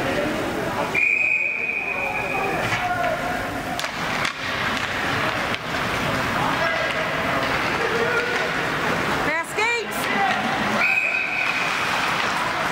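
A referee's whistle blows sharply in a large echoing arena.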